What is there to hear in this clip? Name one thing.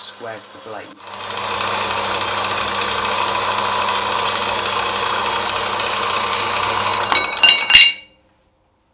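A band saw hums and grinds steadily as it cuts through metal.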